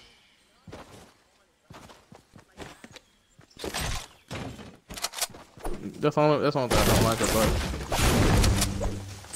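Footsteps run quickly over grass and pavement.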